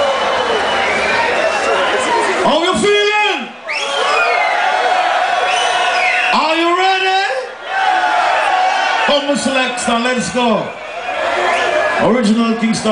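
A man sings loudly into a microphone through loudspeakers.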